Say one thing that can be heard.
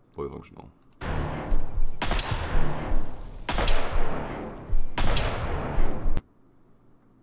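Game gunfire rings out in quick bursts.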